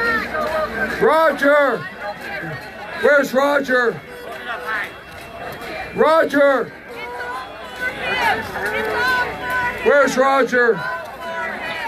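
A large crowd chants loudly in unison outdoors, in short repeated bursts.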